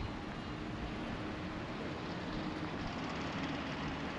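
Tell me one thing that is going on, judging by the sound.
A truck rumbles past.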